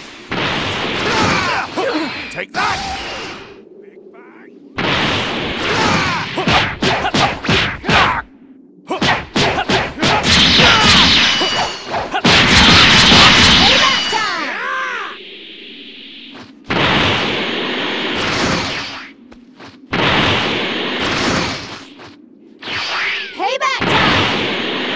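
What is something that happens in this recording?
Energy blasts whoosh and crackle in bursts.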